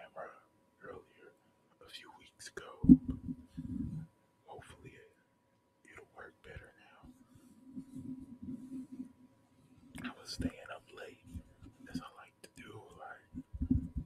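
Fingers scratch and tap on a small object close to a microphone.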